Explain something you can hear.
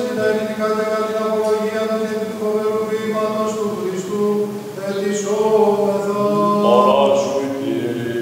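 Men chant together in slow, sustained tones in a large echoing hall.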